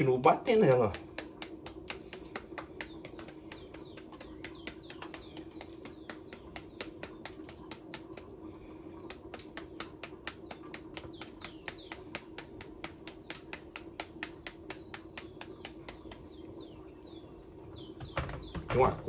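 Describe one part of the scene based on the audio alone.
A knife taps rapidly, chopping into a firm fruit.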